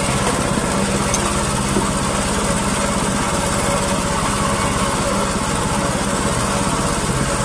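A boat's outboard engine drones steadily.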